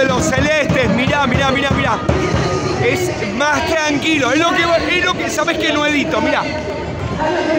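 A middle-aged man shouts excitedly close by.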